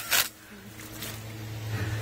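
Water gushes out of a pipe and splashes onto wet ground.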